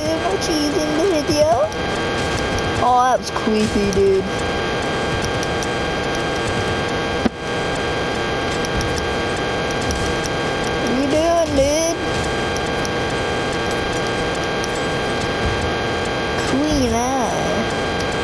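Steady game music plays throughout.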